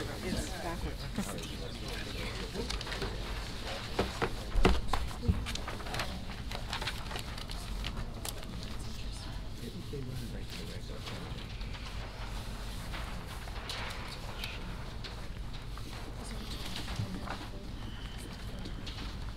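A man speaks calmly into a microphone in a large room with a slight echo.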